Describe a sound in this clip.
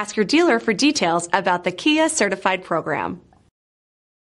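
A young woman speaks brightly and clearly into a microphone.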